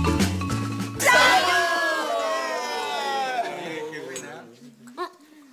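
A group of people cheer and laugh loudly.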